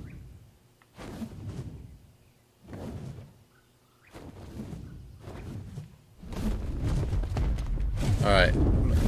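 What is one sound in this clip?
Large wings flap in heavy, whooshing beats.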